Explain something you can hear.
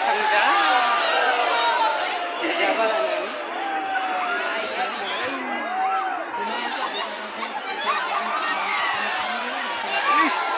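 A large crowd of men and women shout and call out outdoors.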